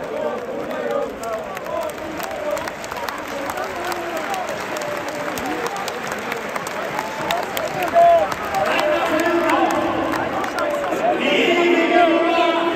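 A large crowd claps its hands.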